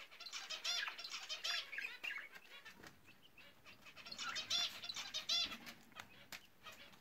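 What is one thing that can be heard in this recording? A budgie chirps and twitters up close.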